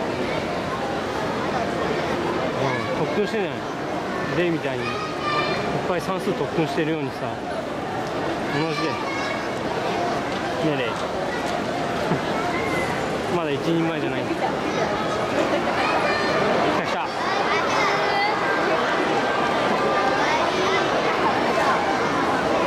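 A crowd of children and adults chatters loudly nearby.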